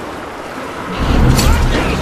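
A rifle fires a loud burst.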